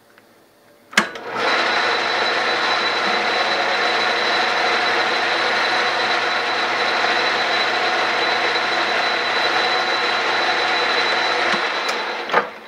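A lathe motor whirs steadily as the spindle spins.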